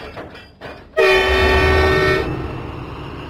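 A diesel engine horn honks.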